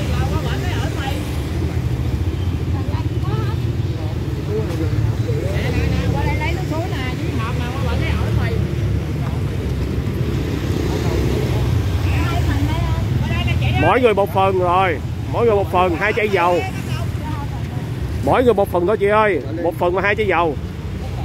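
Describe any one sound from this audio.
Traffic rumbles steadily nearby.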